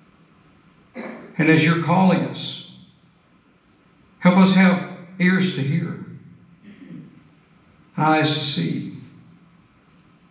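A man speaks calmly through a microphone in a large echoing room, in short phrases with pauses.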